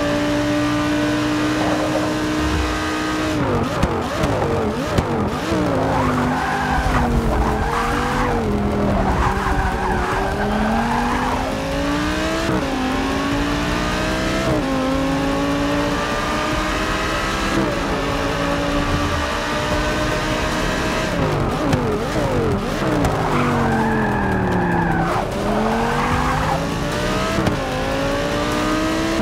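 A racing car engine roars, revving high and dropping sharply as the driver brakes and shifts gears.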